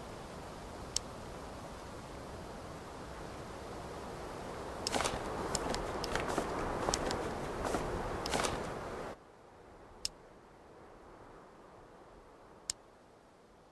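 Soft menu clicks sound now and then.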